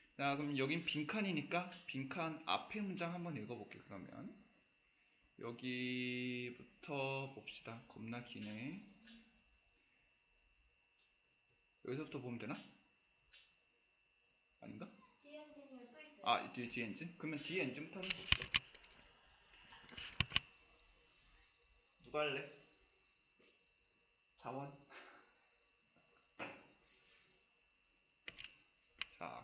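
A young man speaks calmly and steadily into a close microphone, with pauses.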